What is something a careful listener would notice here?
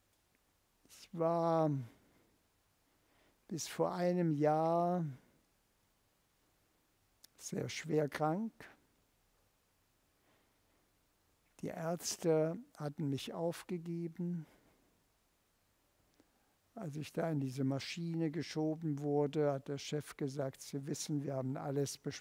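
An elderly man speaks slowly and expressively through a clip-on microphone, with long pauses.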